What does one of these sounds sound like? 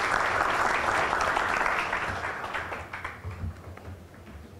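An audience applauds in a large hall, and the applause fades away.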